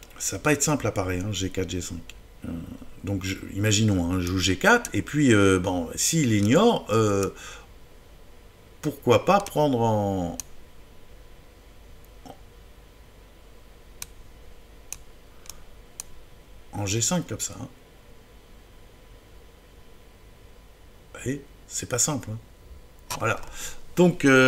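A man speaks with animation into a close microphone, pausing often.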